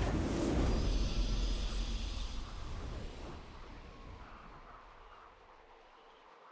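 A triumphant game fanfare swells and then slowly fades.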